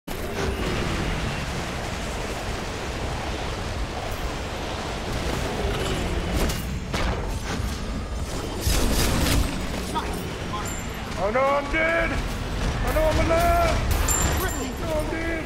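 Magic blasts and hits thump and crash.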